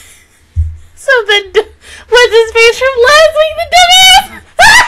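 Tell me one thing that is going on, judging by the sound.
A young woman laughs loudly and giddily into a close microphone.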